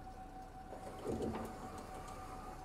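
Bus doors thump shut.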